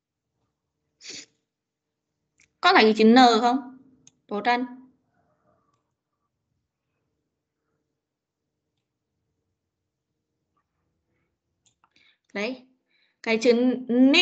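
A child speaks briefly over an online call.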